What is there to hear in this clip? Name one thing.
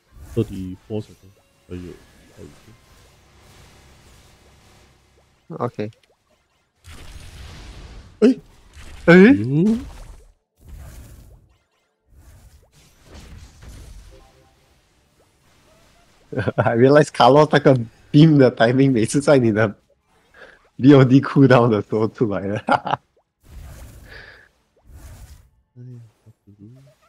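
Magic spell effects burst and crackle in quick bursts.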